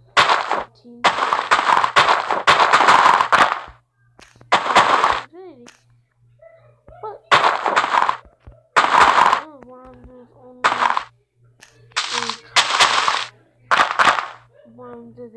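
Game blocks are placed with short, soft thuds.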